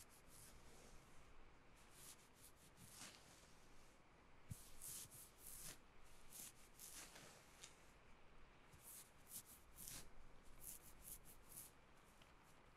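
Fingers brush and rustle softly right against a microphone, in short bursts.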